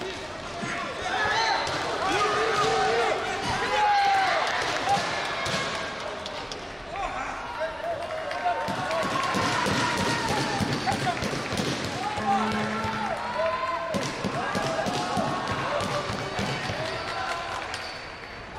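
Spectators and coaches shout and cheer loudly in a large echoing hall.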